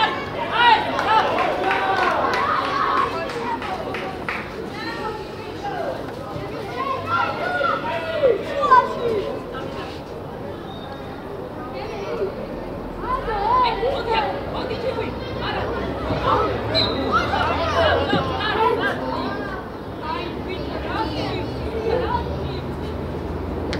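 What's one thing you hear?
Young boys shout and call to each other across an open field.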